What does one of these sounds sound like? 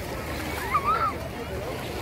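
Water splashes as people play in the shallow sea.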